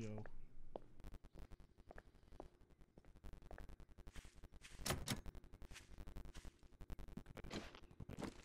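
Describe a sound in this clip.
Footsteps crunch steadily on grass and dirt.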